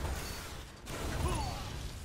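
A rifle fires rapid bursts.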